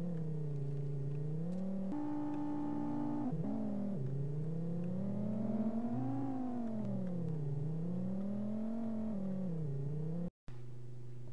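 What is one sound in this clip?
A car engine hums, its pitch rising and falling as it speeds up and slows down.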